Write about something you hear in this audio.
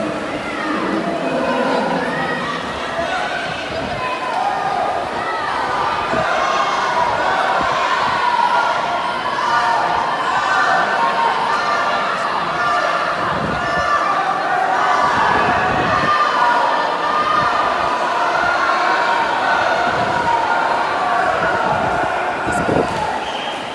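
Swimmers splash through water.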